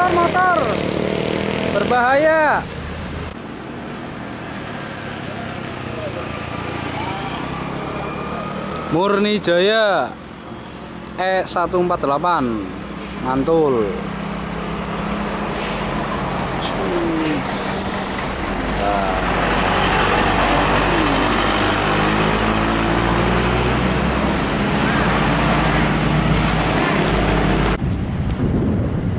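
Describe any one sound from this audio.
A heavy diesel engine rumbles and roars as a bus passes close by.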